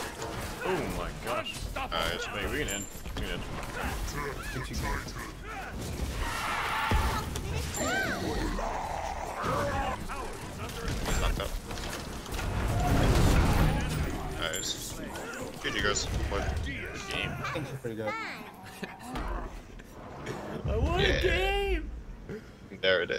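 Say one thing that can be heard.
Game combat effects clash and bang.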